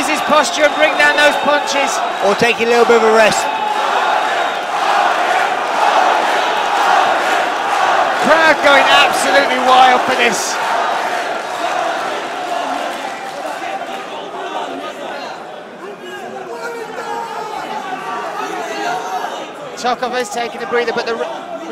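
A crowd cheers and shouts in a large echoing arena.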